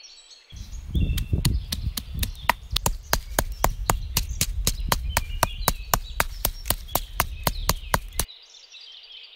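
A stone pestle pounds rhythmically in a stone mortar.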